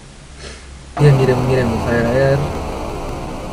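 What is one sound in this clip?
A young man exclaims close to a microphone.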